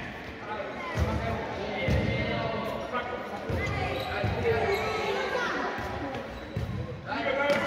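A ball thuds as children kick it in an echoing hall.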